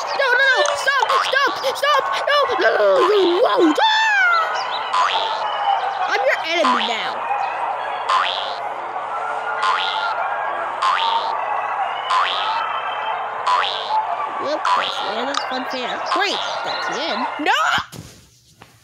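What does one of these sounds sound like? Cheerful cartoon game music plays with bouncy chimes.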